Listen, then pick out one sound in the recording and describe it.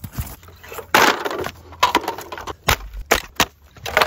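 Bamboo canes crack and snap under a boot.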